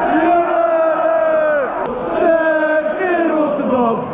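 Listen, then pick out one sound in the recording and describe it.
A young man shouts with excitement close by.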